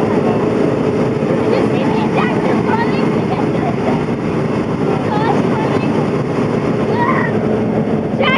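A bus engine idles loudly nearby.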